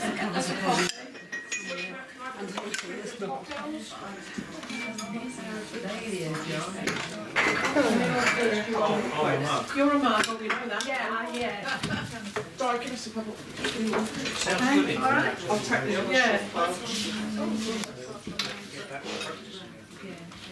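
Metal parts clink as bell handles are handled on a table.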